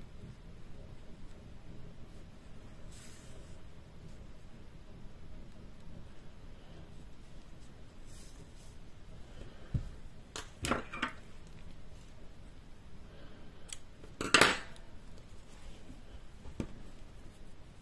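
Yarn rustles softly against fabric as it is pulled.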